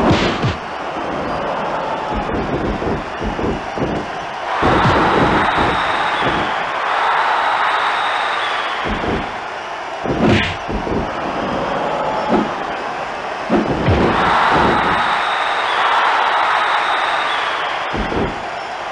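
Heavy blows thud and slam again and again.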